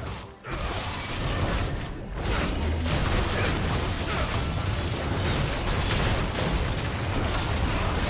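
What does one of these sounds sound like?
Game spell effects blast and crackle in a fight.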